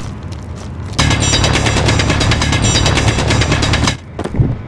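A hand drill grinds loudly into rock.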